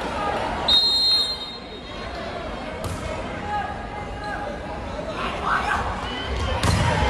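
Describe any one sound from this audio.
A crowd murmurs throughout a large echoing hall.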